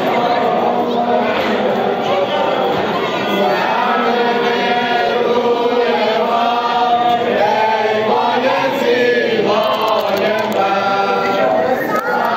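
A large crowd of men chants loudly in unison outdoors.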